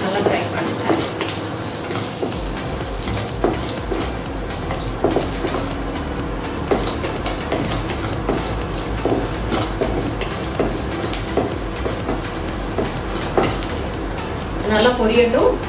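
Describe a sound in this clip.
A wooden spatula stirs and scrapes shallots around a frying pan.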